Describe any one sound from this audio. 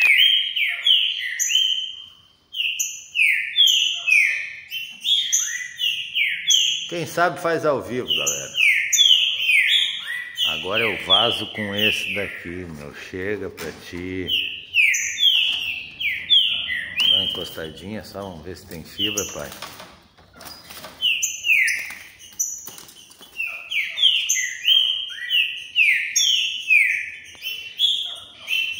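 A caged bird chirps sharply and rapidly, over and over, close by.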